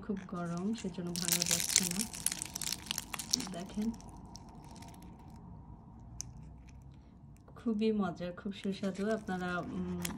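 Flaky pastry crackles and rustles as hands tear it apart.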